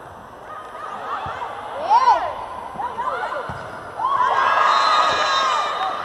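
A volleyball is struck hard with a slap.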